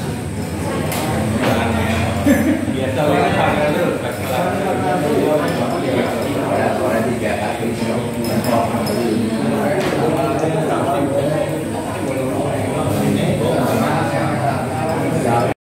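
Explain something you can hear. Several men chat and talk over one another close by.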